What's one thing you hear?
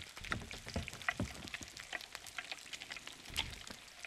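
A small fire crackles in a stove.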